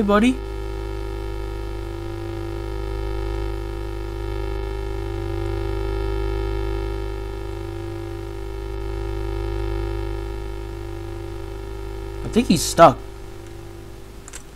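A handheld radio gives off a steady, droning electronic hum.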